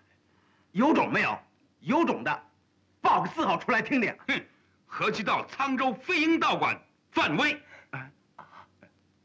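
A man speaks loudly and forcefully, close by.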